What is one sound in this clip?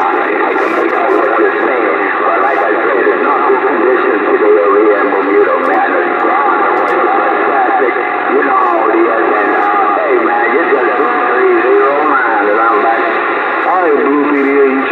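A radio receiver crackles and hisses with static through its small loudspeaker.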